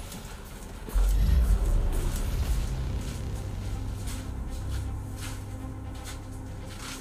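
Deep, booming game music swells in and plays on.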